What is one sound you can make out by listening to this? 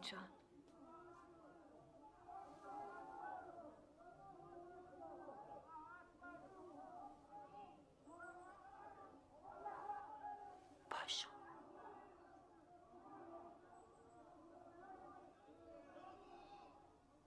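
Women murmur softly in the background.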